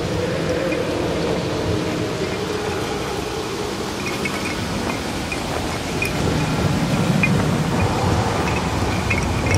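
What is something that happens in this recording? Footsteps run and crunch over leaves and forest ground.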